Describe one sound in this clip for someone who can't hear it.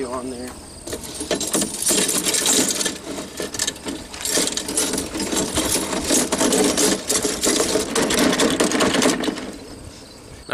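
Rusty wire scrapes and rattles against a metal can.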